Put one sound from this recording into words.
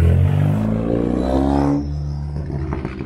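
A car engine revs hard close by through a deep, rumbling exhaust, rising and then falling.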